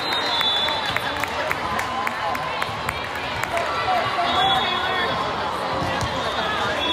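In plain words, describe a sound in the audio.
Young women chatter and call out in a large echoing gym.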